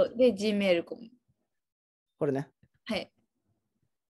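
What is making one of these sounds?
A woman speaks calmly into a microphone in short phrases.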